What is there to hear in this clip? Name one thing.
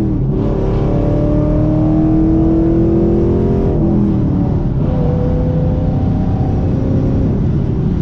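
A car engine hums steadily, rising in pitch and then dropping as it shifts gear.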